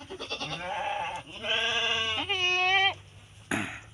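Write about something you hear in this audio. A goat bleats loudly close by.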